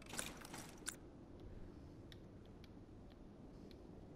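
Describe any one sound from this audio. A wooden drawer slides open with a soft scrape.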